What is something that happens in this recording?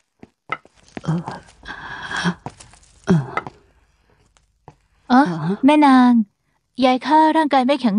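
A woman speaks with emotion.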